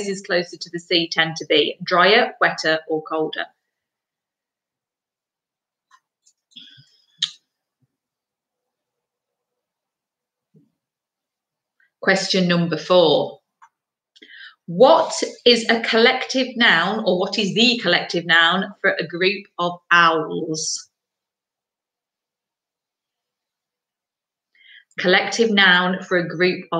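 A woman talks calmly and close to a microphone, with pauses.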